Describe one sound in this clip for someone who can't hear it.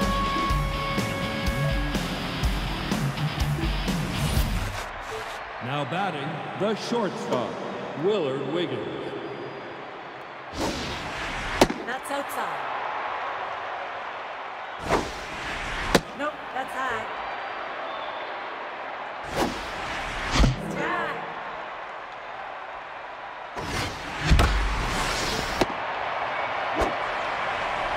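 A large stadium crowd cheers and murmurs throughout.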